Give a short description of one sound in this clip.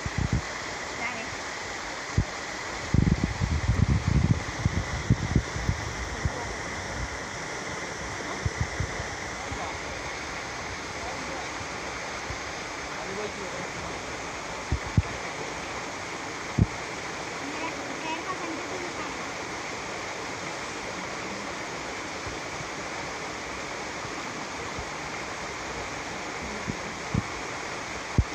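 A stream of water flows and ripples nearby.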